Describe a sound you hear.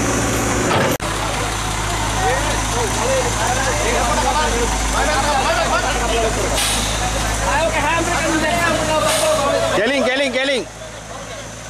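A crowd of men and women chatter and call out nearby.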